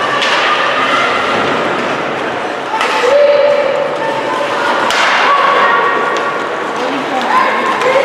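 Skates scrape and carve across ice in a large echoing rink.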